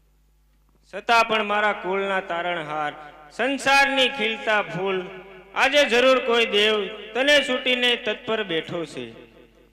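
A woman sings into a microphone over loudspeakers.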